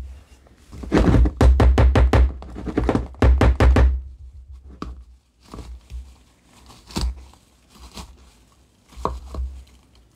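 Dry flakes rattle and rustle in a shaken plastic bowl.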